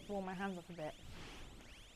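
A young woman speaks briefly and excitedly close to a microphone.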